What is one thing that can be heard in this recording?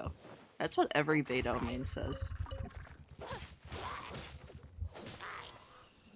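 Sword blades swish and clang in quick slashes.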